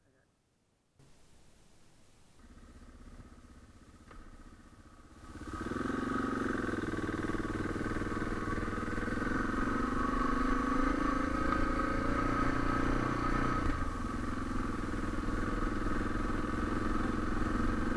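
A single-cylinder dual-sport motorcycle rides along a gravel road.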